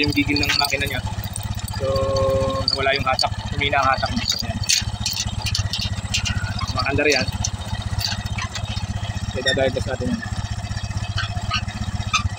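A tractor engine idles with a steady, rapid chugging throb.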